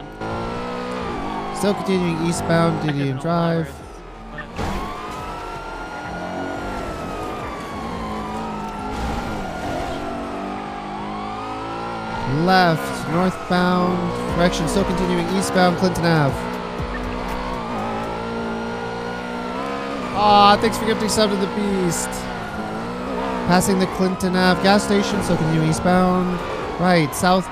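A car engine roars and revs.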